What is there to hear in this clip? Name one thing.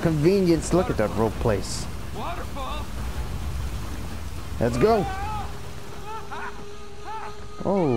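Water rushes and splashes loudly nearby.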